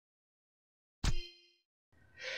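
A short electronic menu chime rings once.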